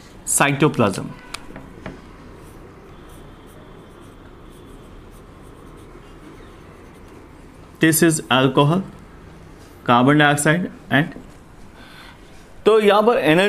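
A man speaks calmly and clearly, close by, as if explaining.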